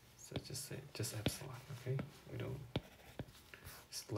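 A stylus taps and scratches on a tablet's glass.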